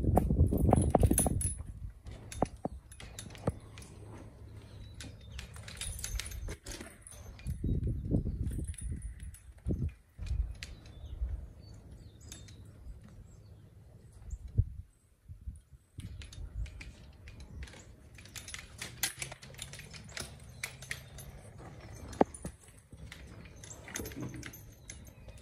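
A mule shifts its hooves on a wooden floor.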